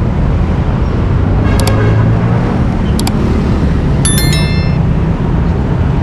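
Motorcycles pass close by.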